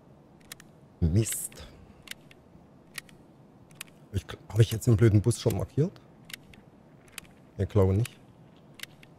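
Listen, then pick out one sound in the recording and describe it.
A man speaks casually into a close microphone.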